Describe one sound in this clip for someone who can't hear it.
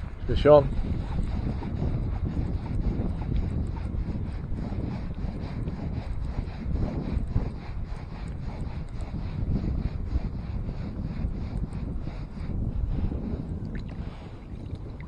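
A fishing reel's handle winds with a fast, steady ratchet clicking.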